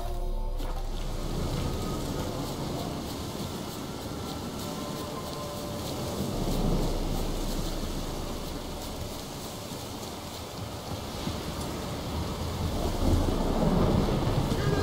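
Footsteps rustle through grass at a steady run.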